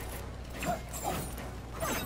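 A chain whip whooshes through the air.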